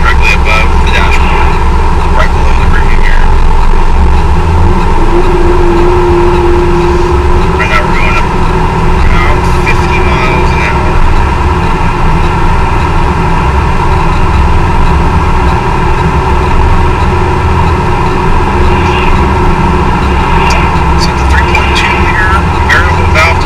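Tyres rumble on the road surface.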